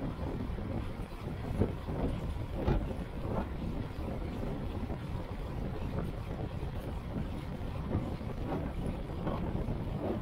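Wind rushes loudly past while cycling outdoors.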